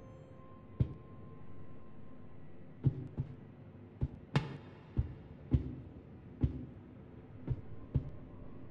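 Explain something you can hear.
Footsteps clank on a metal grating floor in an echoing corridor.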